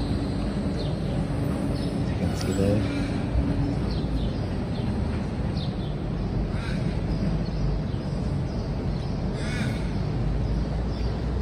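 A tram hums quietly while standing at a stop nearby.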